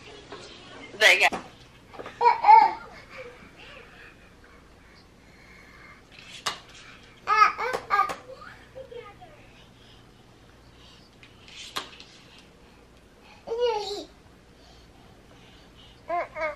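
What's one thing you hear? A baby squeals and babbles excitedly nearby.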